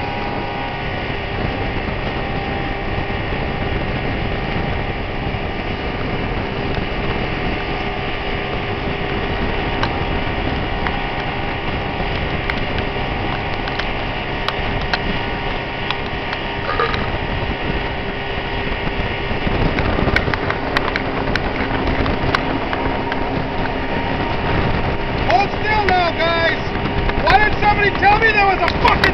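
An outboard motor drones loudly and steadily.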